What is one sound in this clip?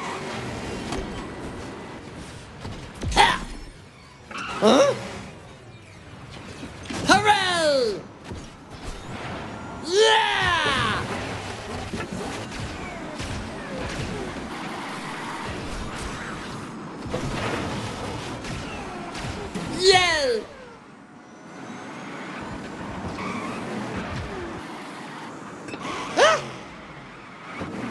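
A racing kart engine whines steadily at high speed.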